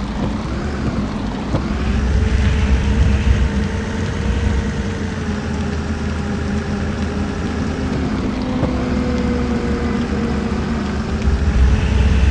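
A bus engine hums steadily, its pitch rising and falling as the bus drives.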